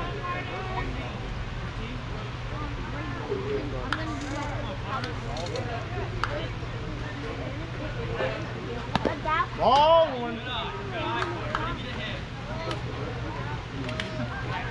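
Children and adults chatter and call out nearby outdoors.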